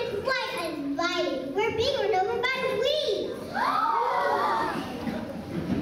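A young girl speaks into a microphone in a large hall.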